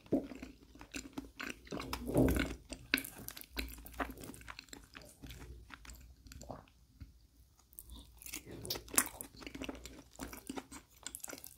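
A wooden fork scrapes and taps on a plate.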